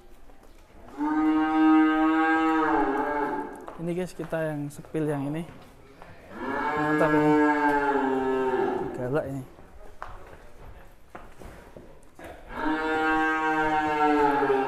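A cow moos loudly and long, several times.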